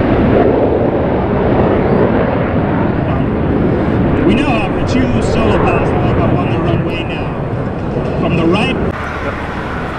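Jet engines roar loudly overhead.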